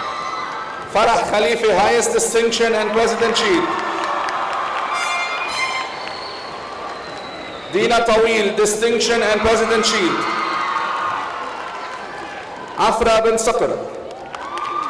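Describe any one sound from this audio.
A man reads out names over a loudspeaker in a large echoing hall.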